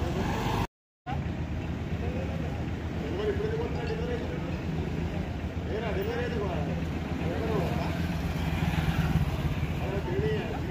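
A small truck engine idles.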